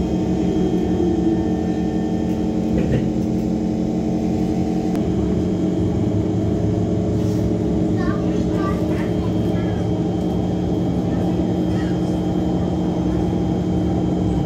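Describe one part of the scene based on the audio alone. A train hums and rumbles steadily along the track.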